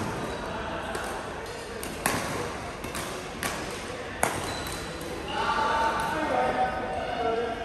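Badminton rackets smack shuttlecocks with sharp cracks in a large echoing hall.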